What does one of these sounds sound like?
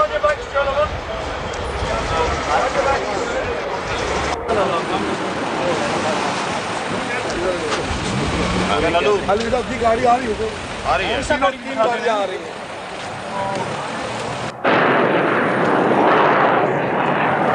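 Men talk among themselves in a crowd outdoors.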